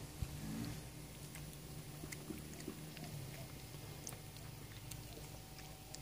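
A cat chews and laps wet food from a metal pan.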